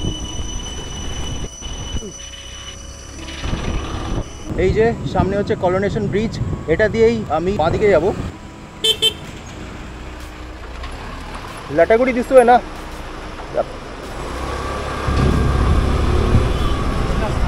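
A motorbike engine hums steadily while riding.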